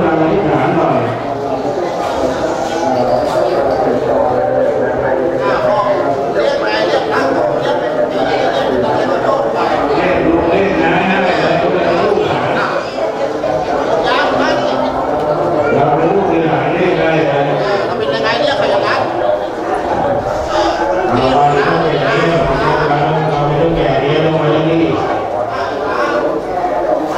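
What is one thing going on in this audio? A group of men chant together in a steady drone, echoing slightly in a large hall.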